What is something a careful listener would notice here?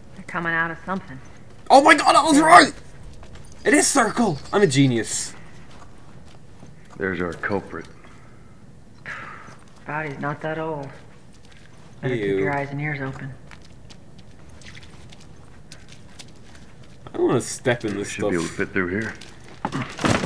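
A man speaks in a low, calm voice, pausing between short remarks.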